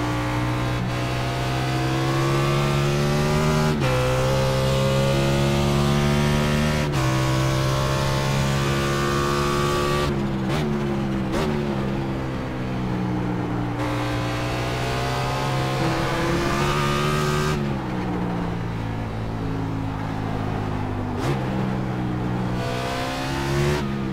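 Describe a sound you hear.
A racing car engine roars loudly, rising in pitch through each gear and dropping sharply at each gear change.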